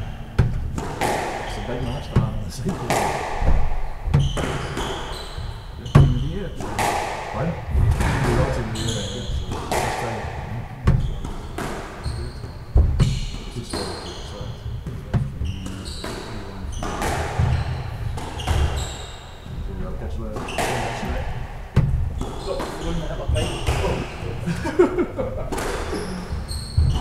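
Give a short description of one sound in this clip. Rackets strike a squash ball with sharp cracks.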